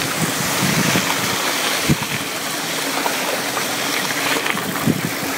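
A bicycle rattles and knocks over bumps.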